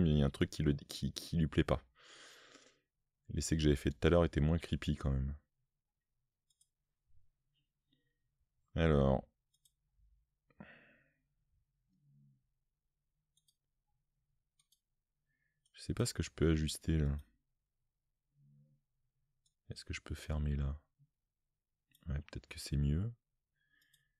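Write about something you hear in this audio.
A man speaks calmly into a close microphone, pausing often.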